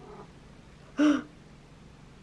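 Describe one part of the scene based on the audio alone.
A cat meows loudly up close.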